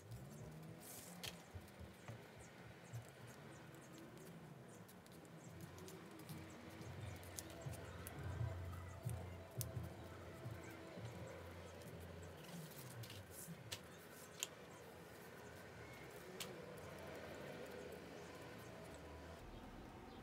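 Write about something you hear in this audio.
A knife scrapes and shaves wood in short strokes, with small clicks.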